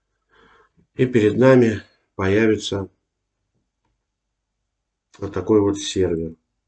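A man speaks calmly and close into a microphone, in short phrases with pauses.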